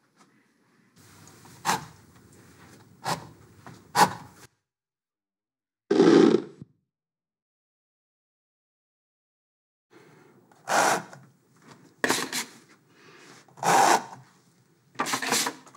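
A palette knife scrapes paint across a board.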